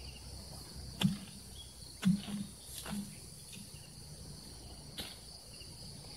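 A hoe strikes the dry ground with dull thuds.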